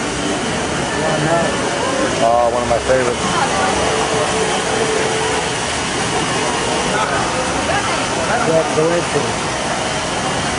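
Nearby adults talk in passing.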